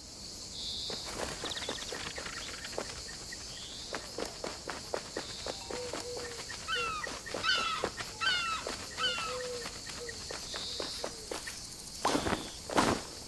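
Light footsteps patter quickly on hard ground.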